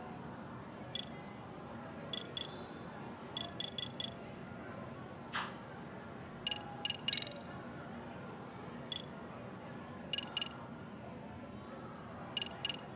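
Short electronic menu chimes click as selections change.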